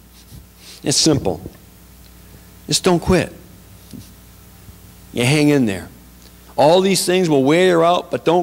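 A middle-aged man speaks slowly and deliberately into a microphone, with pauses between phrases.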